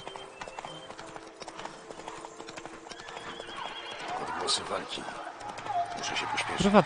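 Horse hooves clop steadily along a dirt path.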